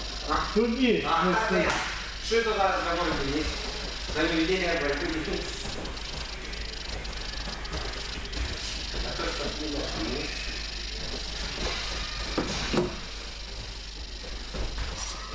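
Bare feet shuffle and thump on a soft mat.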